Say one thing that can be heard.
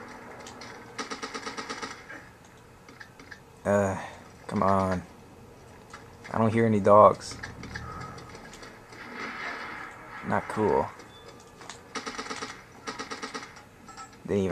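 Gunfire rattles in rapid bursts from a television.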